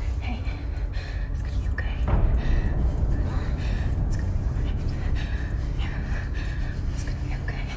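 A woman speaks softly and closely.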